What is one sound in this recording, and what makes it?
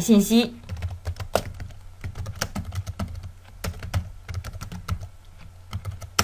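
Keys on a keyboard click as someone types.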